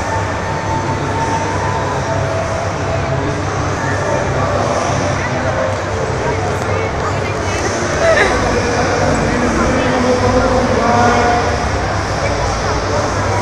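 A crowd murmurs and chatters in a large echoing hall.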